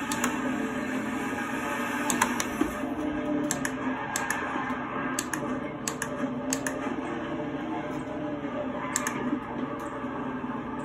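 Plastic gear paddles click sharply.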